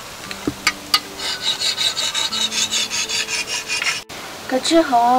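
A blade scrapes rhythmically against something hard.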